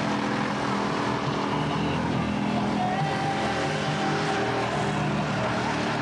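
A car engine roars loudly as its tyres spin.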